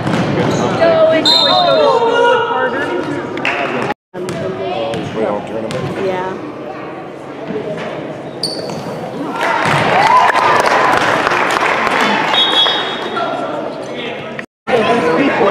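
Spectators chatter and call out in a large echoing gym.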